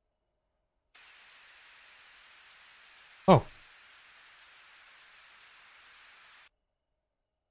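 A radio hisses with steady static.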